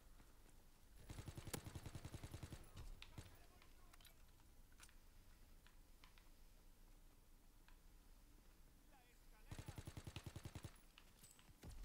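Rapid bursts of automatic gunfire ring out.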